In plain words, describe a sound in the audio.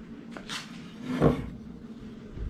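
A wooden piece knocks against a hard tabletop.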